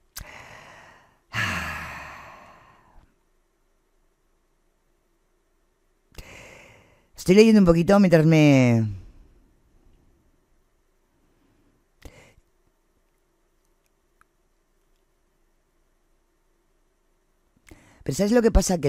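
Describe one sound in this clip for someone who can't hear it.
A middle-aged woman speaks expressively into a close microphone, with pauses.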